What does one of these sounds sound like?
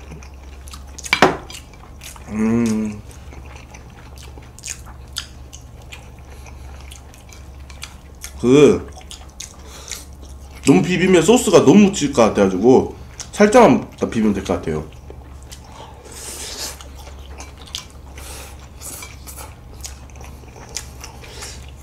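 Chopsticks clink on a ceramic plate.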